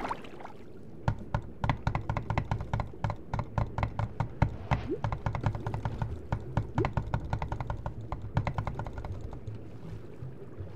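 Water bubbles and gurgles in quick, uneven pops while swimming underwater.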